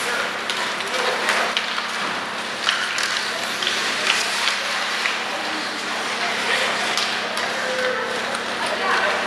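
Ice skates scrape and carve across ice in an echoing arena.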